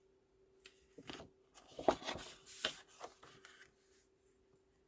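A sheet of paper slides and rustles across a table.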